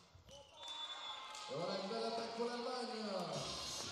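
Young women shout and cheer together in celebration.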